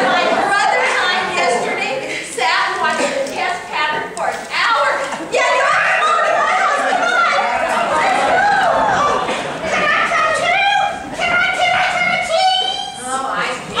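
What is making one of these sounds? Men and women sing together into microphones in a room with some echo.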